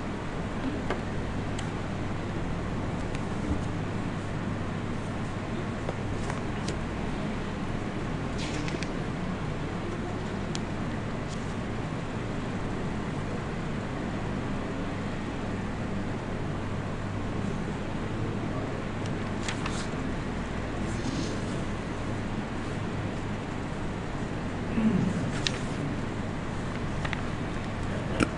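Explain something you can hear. A man speaks calmly and slowly into a microphone, close by.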